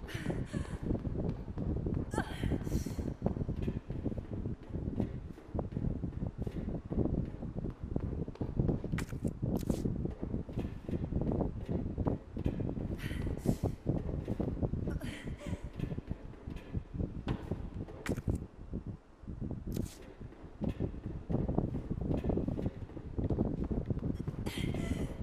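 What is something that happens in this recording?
Footsteps clatter on metal stairs and hard floors.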